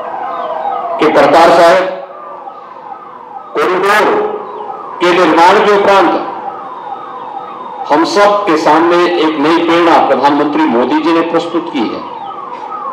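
A man speaks loudly and forcefully into a microphone over a loudspeaker.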